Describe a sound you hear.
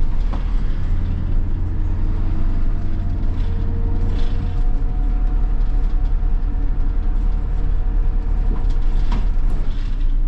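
A bus engine hums and rumbles steadily from inside the cabin.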